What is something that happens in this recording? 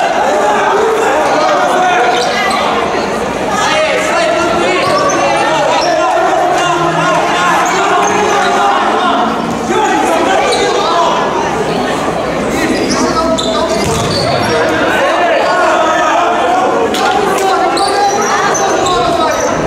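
A crowd of spectators shouts and cheers throughout a large echoing hall.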